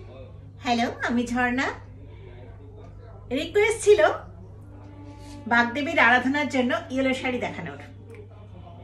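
A middle-aged woman speaks warmly and clearly close to the microphone, in short bursts.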